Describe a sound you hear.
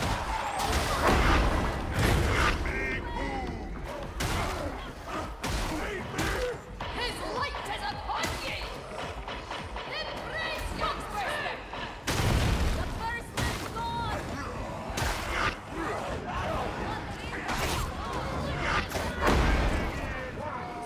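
Heavy explosions boom now and then.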